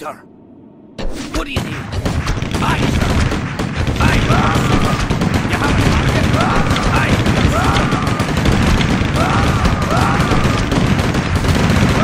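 Weapons clash over and over in a loud, busy battle.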